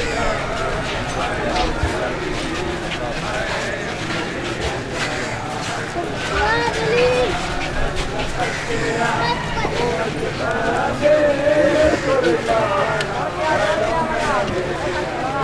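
A large crowd of men murmur and call out together outdoors.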